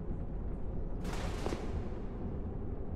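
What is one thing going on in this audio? Armour rustles and clanks as a game character changes gear.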